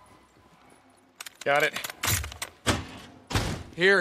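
A heavy door is pushed open.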